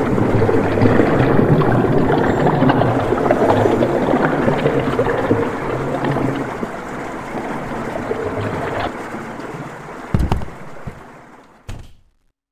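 Water gurgles and swirls steadily.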